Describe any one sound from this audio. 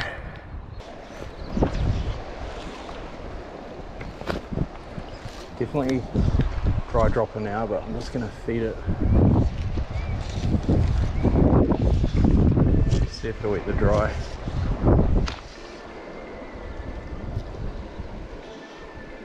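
A shallow river gently ripples over stones.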